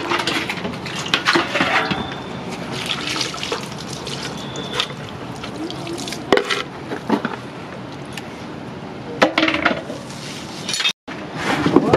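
Water sloshes and splashes.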